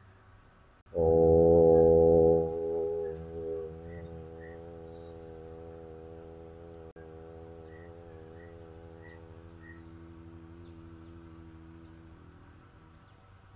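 A young man chants a long, steady hum that slowly fades.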